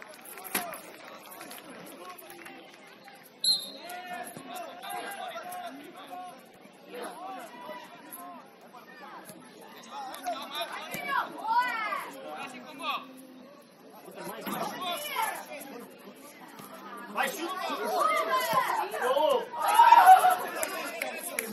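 Adult spectators shout encouragement from the sideline, louder toward the end.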